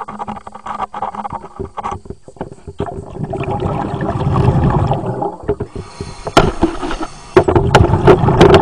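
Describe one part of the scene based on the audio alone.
Water sloshes and splashes close by.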